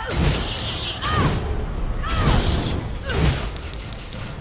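Crackling electric blasts burst out again and again.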